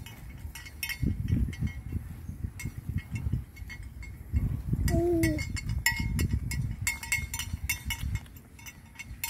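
Wind gusts roughly against the microphone outdoors.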